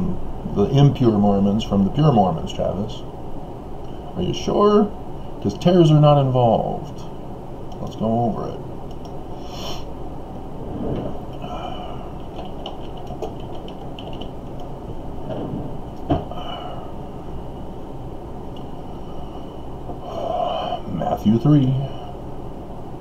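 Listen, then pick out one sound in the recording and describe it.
A middle-aged man speaks close to a microphone in short bursts, with pauses.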